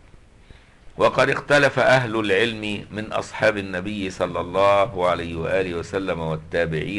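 An elderly man speaks calmly and steadily through a microphone.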